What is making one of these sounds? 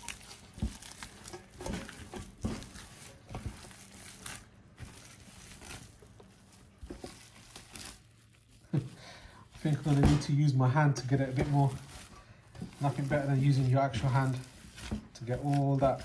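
Gloved hands squelch and slap through wet minced meat.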